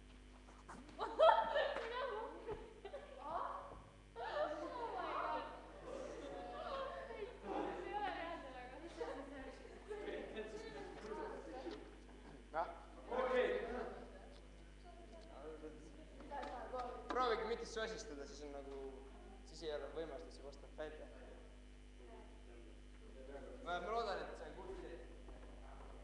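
A boy speaks calmly into a microphone in an echoing hall.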